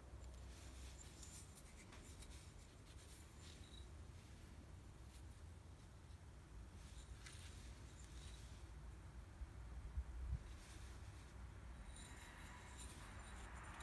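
A stone is scraped and tapped softly with an antler tool.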